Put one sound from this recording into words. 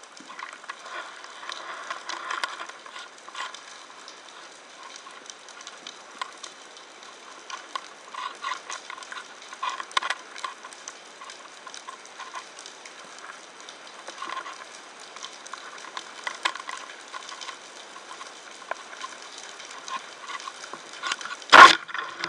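Underwater crackling and clicking sounds fill the water.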